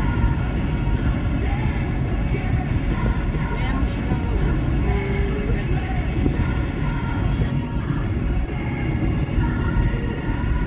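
Road and engine noise rumble inside a small car cruising at speed on a highway.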